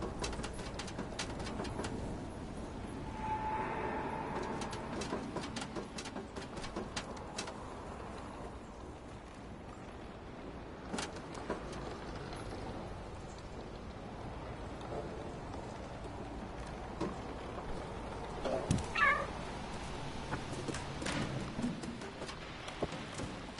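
A cat's paws patter lightly on a sheet-metal roof.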